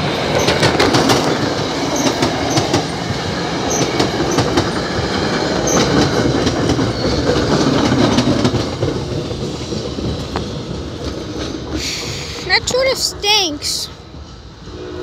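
A passenger train rumbles past close by, its wheels clattering on the rails.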